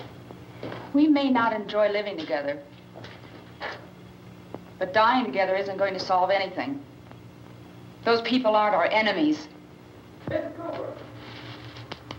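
A woman speaks in short, earnest phrases nearby.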